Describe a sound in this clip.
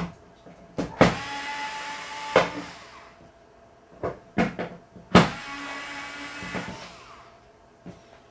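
A cordless screwdriver whirs in short bursts.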